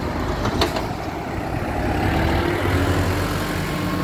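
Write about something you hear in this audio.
Cars drive past on a street outdoors.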